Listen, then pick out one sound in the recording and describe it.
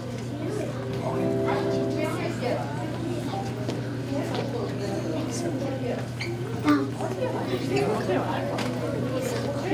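An accordion plays a tune.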